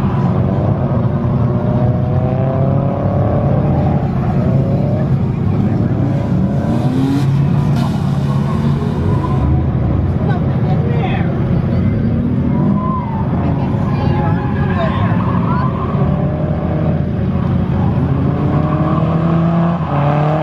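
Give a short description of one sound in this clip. Tyres squeal and screech on pavement.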